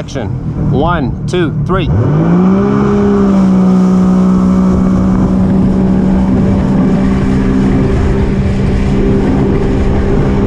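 Water splashes against a jet ski's hull.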